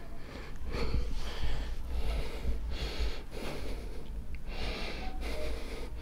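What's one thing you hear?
A woman speaks quietly and tearfully close by.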